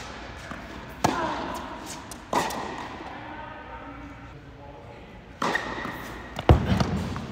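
A tennis ball is struck sharply with a racket, echoing in a large hall.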